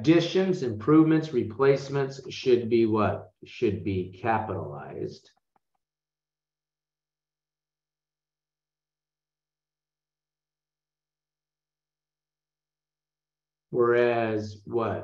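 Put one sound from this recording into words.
A man explains calmly, close to a microphone.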